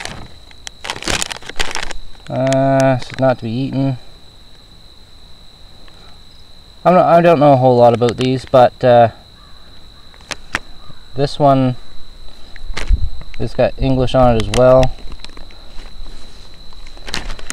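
A plastic packet crinkles and rustles in hands.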